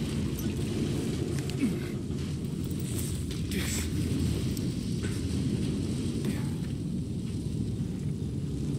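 Hands scrape and grip against a wall during a climb.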